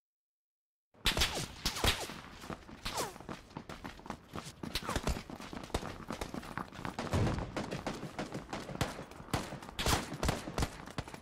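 Quick footsteps run over hard, gravelly ground.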